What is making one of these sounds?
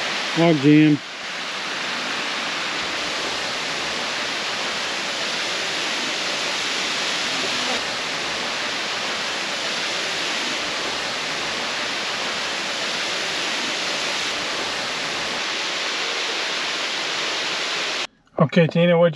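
A waterfall rushes steadily.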